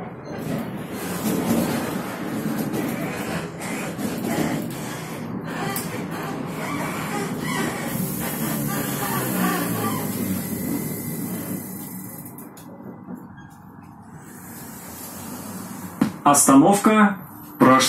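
A bus engine hums and rumbles while driving.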